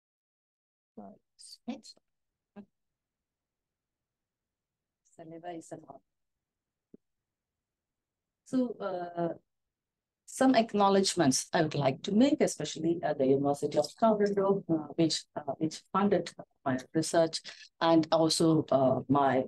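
A woman speaks with animation, heard through a microphone in a quiet room.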